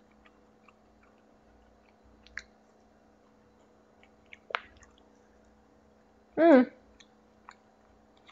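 A young woman chews food with her mouth closed.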